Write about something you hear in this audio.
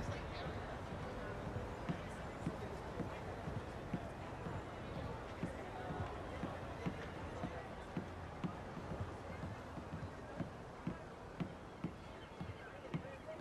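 Footsteps thud steadily on a wooden boardwalk.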